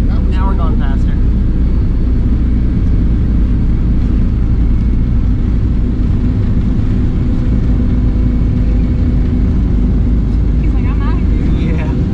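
Jet engines roar loudly and steadily inside an airliner cabin as it speeds up and lifts off.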